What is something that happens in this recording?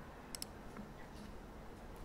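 Fingernails tap lightly on a wooden desk.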